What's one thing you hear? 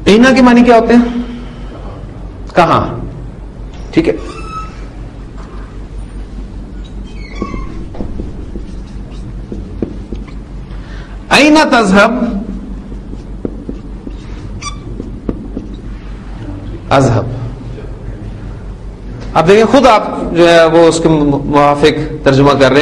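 A man speaks calmly and clearly, as if teaching, with pauses.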